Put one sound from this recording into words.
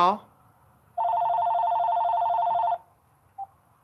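A phone plays a steady ringing tone.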